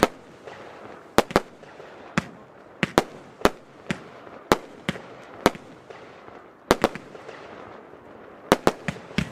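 Fireworks bang and crackle in the night sky, with sharp blasts coming again and again.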